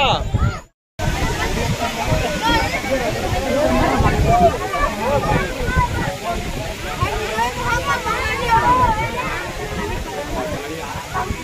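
Heavy rain pours down outdoors in gusty wind.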